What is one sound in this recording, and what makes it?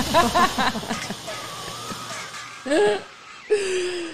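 A woman laughs heartily.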